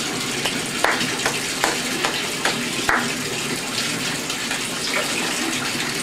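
Water splashes as a baby slaps it with small hands.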